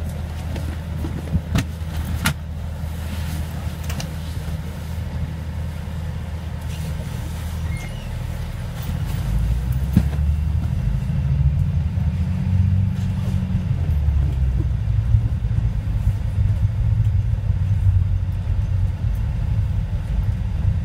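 A bus engine rumbles low and steady while the bus drives along.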